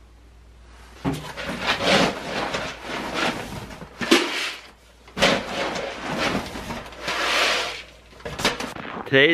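Dry grain pours and rattles into a plastic bucket.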